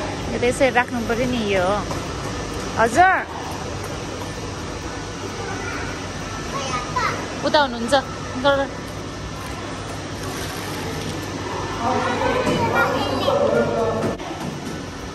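A young child chatters and squeals excitedly nearby.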